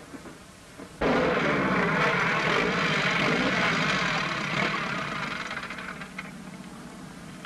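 A motorcycle engine roars as it rides past.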